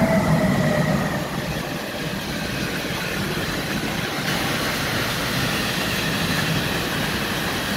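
Wheels of a freight train of car-carrier wagons clatter and rumble over the rails.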